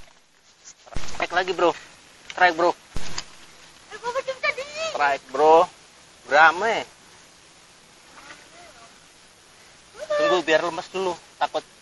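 A man talks loudly and with animation close by.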